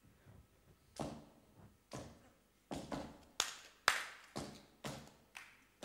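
A woman makes sharp popping sounds with her mouth into a microphone, echoing through a large hall.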